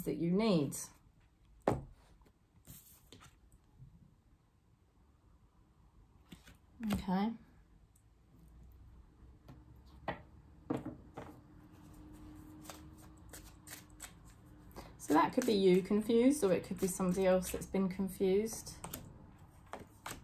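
Cards shuffle and tap in a woman's hands.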